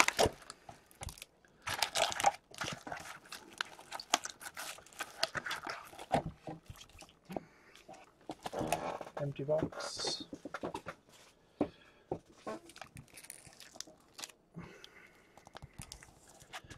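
Foil card packs crinkle and rustle as hands shuffle them.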